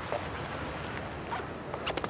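A car door handle clicks open.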